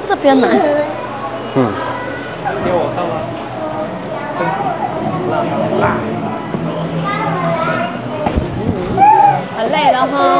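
Children and adults chatter nearby in an echoing hall.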